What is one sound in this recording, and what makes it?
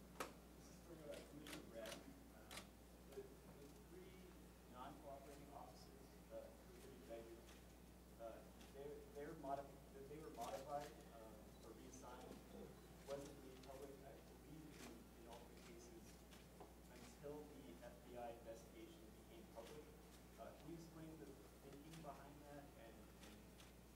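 A man speaks calmly into a microphone, heard through a loudspeaker in a room.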